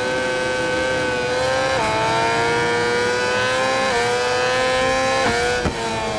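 A motorcycle engine screams at high revs, its pitch climbing slowly and dropping sharply at each gear change.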